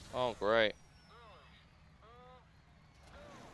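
Countdown beeps sound before a race start.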